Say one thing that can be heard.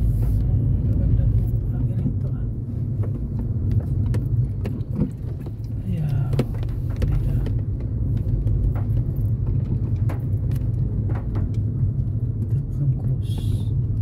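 Raindrops tap on a windshield.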